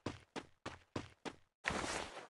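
Footsteps thud quickly on dry ground.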